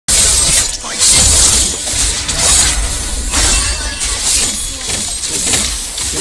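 Game spell effects whoosh and crackle in rapid bursts.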